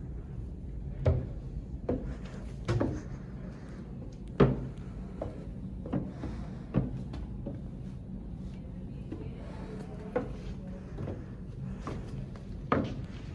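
Shoes thump on wooden steps.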